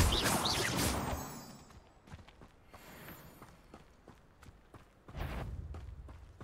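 Footsteps patter on grass and dirt.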